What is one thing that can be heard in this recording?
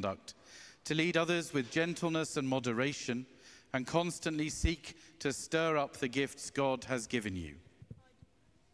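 A man speaks calmly through a microphone in an echoing hall.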